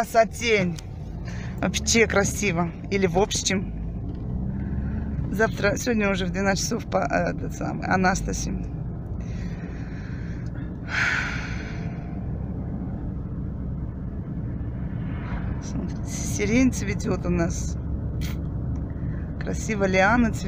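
A car engine hums steadily with tyres rumbling on the road, heard from inside the car.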